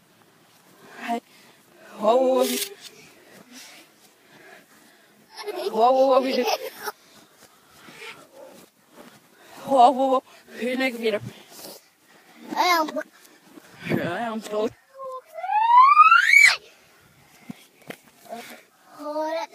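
A young girl talks animatedly close to a phone microphone, with squeals and rising shrieks.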